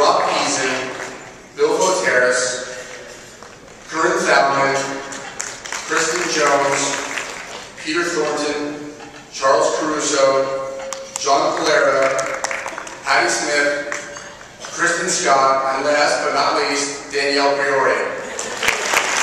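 A man speaks steadily into a microphone in a large echoing hall.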